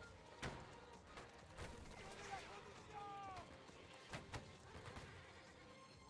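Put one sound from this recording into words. Muskets fire in bursts of sharp shots.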